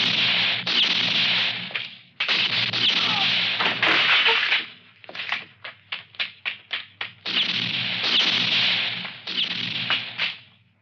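Gunshots crack repeatedly and echo off walls nearby.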